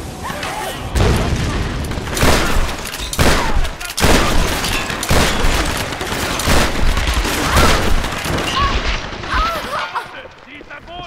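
Gunfire rattles loudly with heavy booms.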